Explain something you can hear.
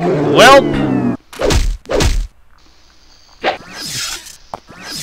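Magic spell effects whoosh and chime in bursts.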